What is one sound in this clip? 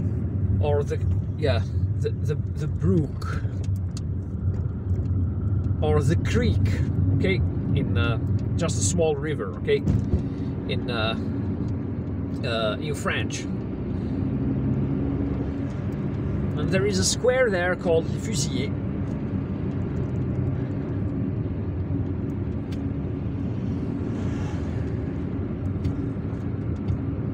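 A car engine hums steadily with road noise while driving.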